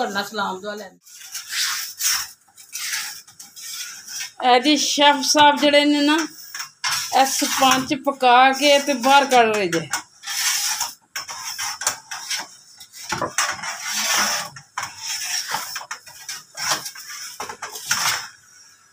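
A long metal peel scrapes and knocks inside an oven.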